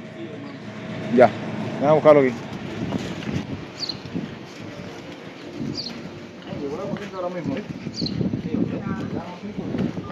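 Footsteps walk along a pavement outdoors.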